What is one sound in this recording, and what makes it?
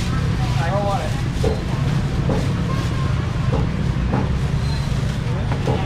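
Many voices murmur nearby.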